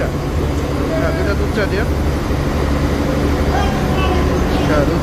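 A man speaks nearby in a casual tone.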